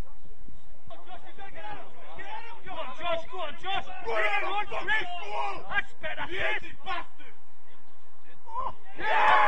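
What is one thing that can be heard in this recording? A man calls out nearby.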